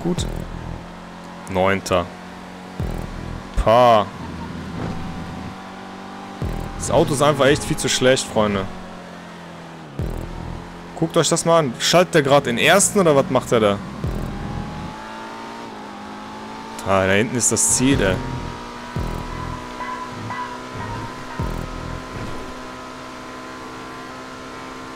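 A racing car engine roars steadily.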